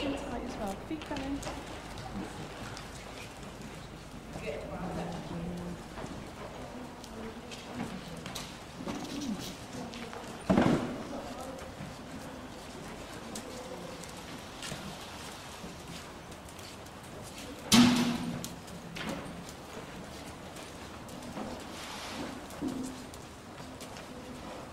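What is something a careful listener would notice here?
Horses' hooves thud softly on a sandy floor.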